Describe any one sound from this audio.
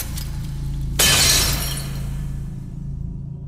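Magic sparkles burst with a bright shimmering hiss.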